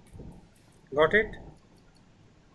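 A man speaks briefly and close to a microphone.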